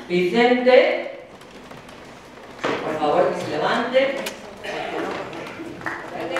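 A woman reads aloud into a microphone in an echoing hall.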